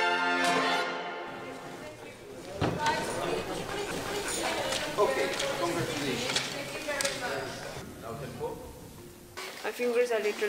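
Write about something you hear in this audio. An orchestra plays with strings swelling and fading.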